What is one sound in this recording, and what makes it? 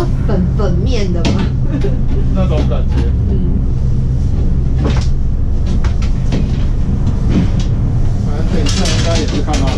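A low, steady mechanical rumble and hum fills an enclosed cabin.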